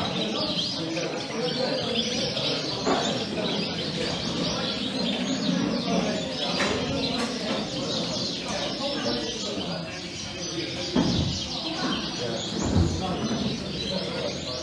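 Many canaries chirp and trill nearby.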